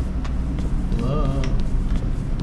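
A young man murmurs briefly close to a microphone.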